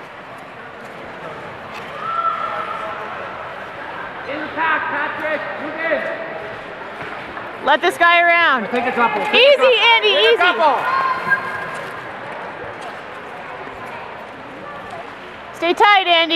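Skate blades scrape and hiss across ice in a large echoing rink.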